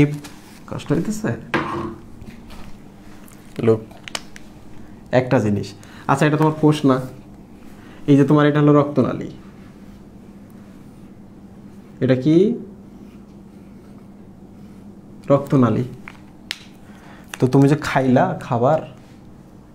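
A man speaks calmly nearby, explaining in short bursts with pauses.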